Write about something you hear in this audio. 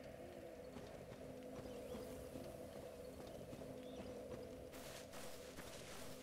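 Armoured footsteps crunch on soft ground.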